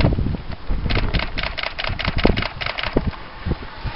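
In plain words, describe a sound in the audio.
A bicycle freewheel ticks rapidly as a cyclist rides past close by.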